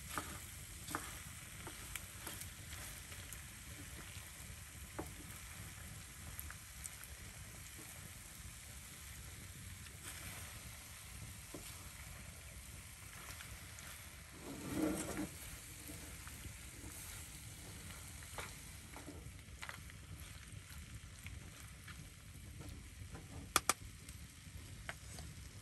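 Potatoes sizzle in hot oil.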